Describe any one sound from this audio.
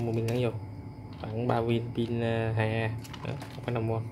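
A battery clicks into a plastic drone body.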